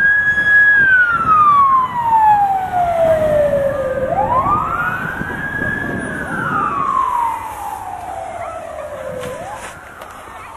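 A fire truck siren wails loudly, sweeping up and down in pitch.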